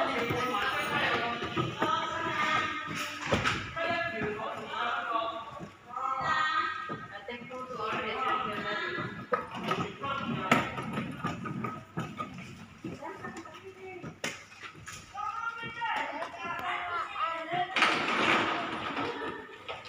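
Plastic wheels of a toy car rumble over a smooth floor.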